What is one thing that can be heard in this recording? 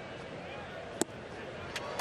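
A baseball pops sharply into a catcher's mitt.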